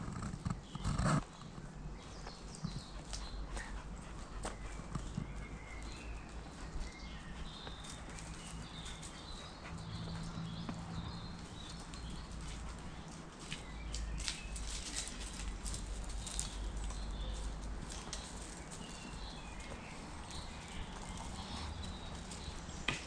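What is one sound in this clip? Boots scuff and scrape on rock as a person climbs.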